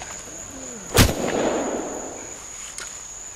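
A rifle fires a loud shot that echoes through the woods.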